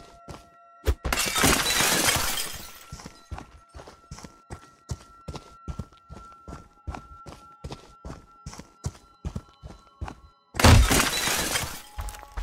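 Window glass shatters loudly with a crash.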